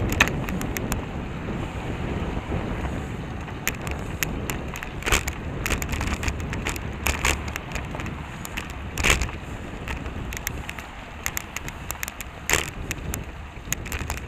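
A bicycle rattles and clicks over bumps in the road.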